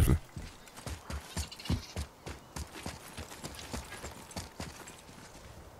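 Heavy footsteps thud quickly on stone.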